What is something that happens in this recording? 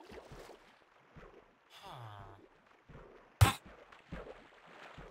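Water splashes softly as swimmers paddle.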